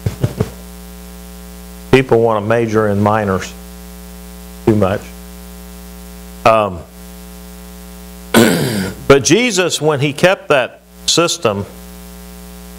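A middle-aged man speaks in short bursts with pauses, heard through a lapel microphone.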